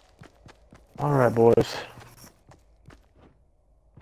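Footsteps rustle softly through tall grass.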